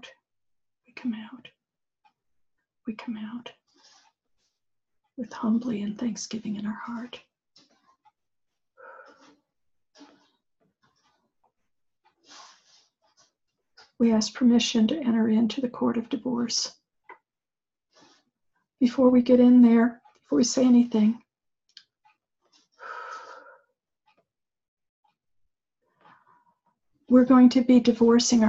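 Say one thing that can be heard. An elderly woman speaks calmly in short bursts with pauses, close to a microphone, as if over an online call.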